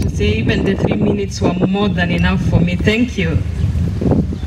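A woman speaks through a microphone and loudspeakers outdoors.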